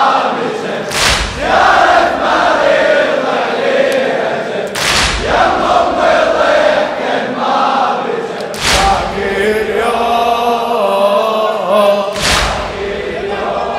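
A crowd beats their chests in unison with loud slaps.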